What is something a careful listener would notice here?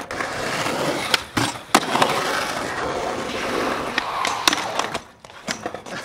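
Skateboard wheels roll loudly over concrete.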